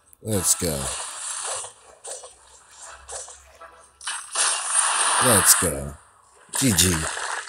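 Magic blasts burst and whoosh.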